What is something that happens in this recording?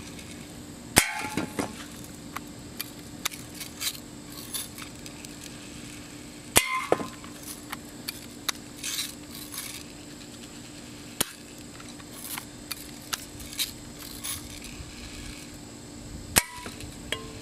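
Metal cans are struck with sudden sharp cracks and knocked over.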